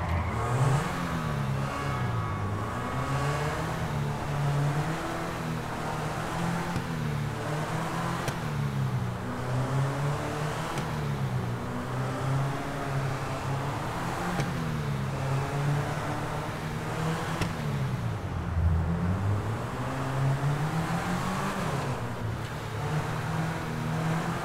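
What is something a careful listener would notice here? A sports car engine revs up and down repeatedly, echoing in an enclosed space.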